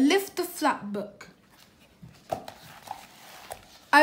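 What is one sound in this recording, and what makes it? A page of a stiff book turns with a light papery rustle.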